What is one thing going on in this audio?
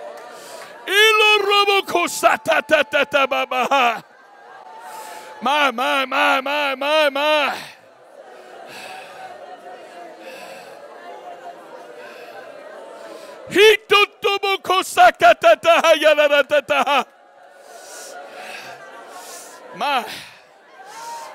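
An older man shouts forcefully into a microphone, heard through loudspeakers in an echoing hall.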